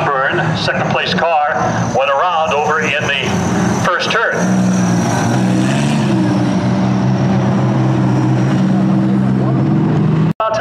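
Race car engines roar and whine, rising and falling in pitch.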